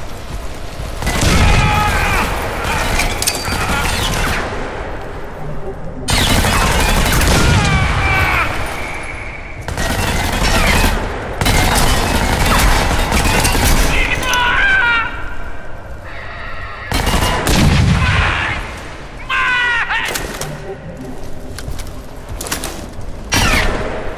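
Gunshots fire in loud bursts with booming echoes.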